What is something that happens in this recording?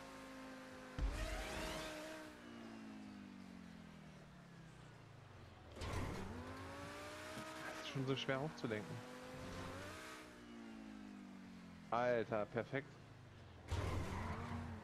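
Car tyres thump on landing after a jump.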